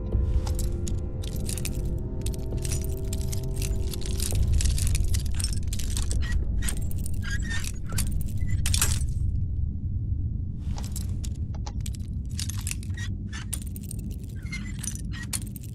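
A metal lockpick scrapes and clicks inside a lock.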